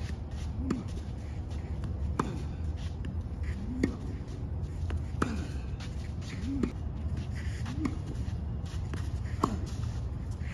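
A tennis ball is struck with a racket with sharp pops, over and over.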